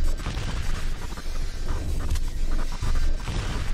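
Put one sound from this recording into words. A punch thuds against a body.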